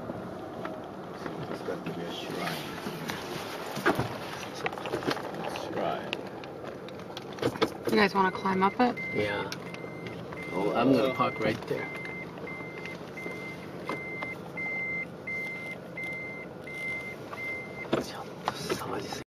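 A car engine hums and tyres rumble on the road, heard from inside the car.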